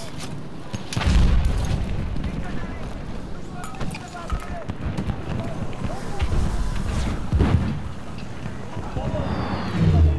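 Gunfire crackles in bursts.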